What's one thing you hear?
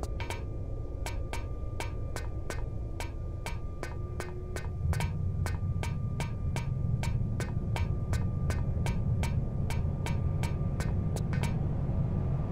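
Quick footsteps clatter on a metal floor.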